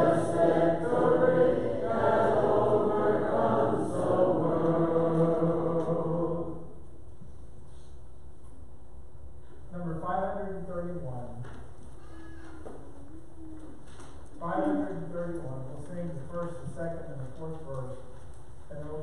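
A man speaks steadily through a microphone in a large echoing room, with pauses.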